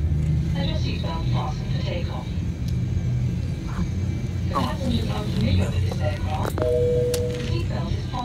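A woman talks softly nearby.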